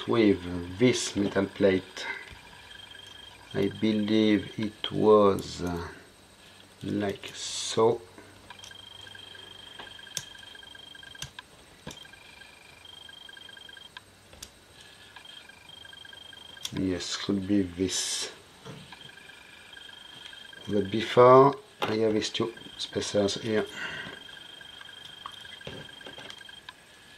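Small metal parts click and tap softly as they are handled.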